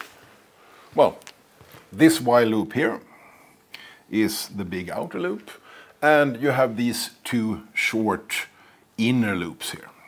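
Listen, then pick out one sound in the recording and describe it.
A man lectures in a room, speaking calmly with pauses.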